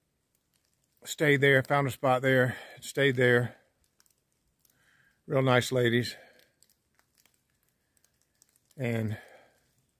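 An older man speaks calmly and close up, in short phrases.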